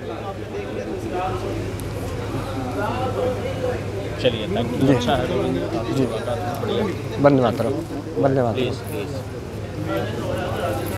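A middle-aged man speaks calmly and warmly, close to a clip-on microphone.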